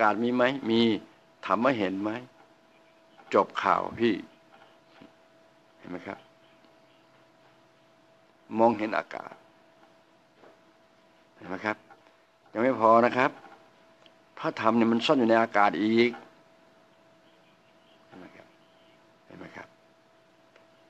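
An elderly man speaks into a microphone close by, in short bursts with pauses.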